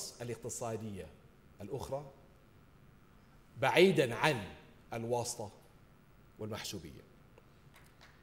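A middle-aged man speaks slowly and solemnly into a microphone in a large hall.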